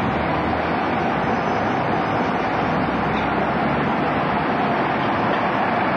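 A bus engine rumbles as the bus pulls closer.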